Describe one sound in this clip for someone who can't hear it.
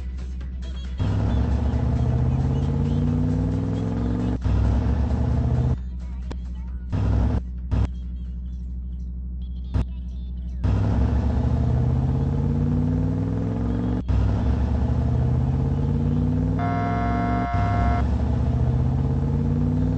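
A truck engine revs up repeatedly as it accelerates through the gears.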